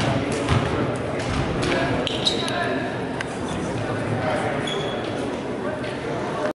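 Players slap hands as they pass one another.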